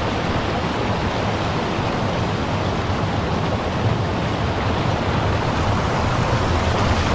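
Water rushes and splashes steadily over a small weir.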